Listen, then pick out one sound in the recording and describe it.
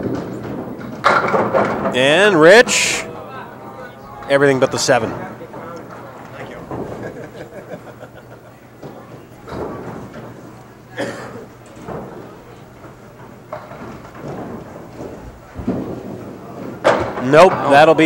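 Bowling pins crash and clatter as a ball strikes them.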